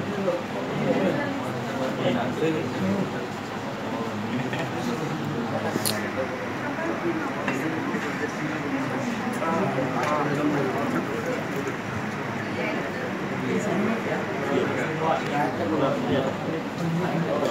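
Young people chatter all around at close range.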